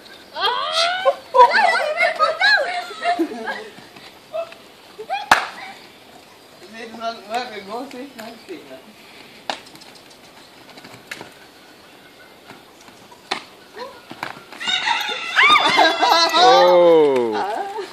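Women and girls shout and laugh excitedly nearby.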